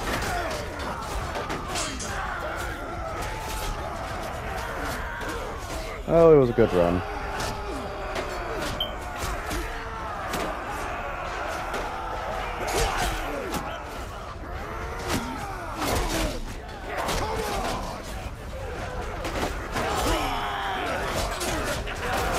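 Swords and shields clash and clang repeatedly in a noisy battle.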